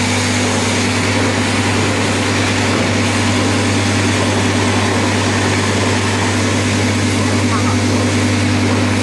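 A packing machine hums and whirs steadily, loud and close.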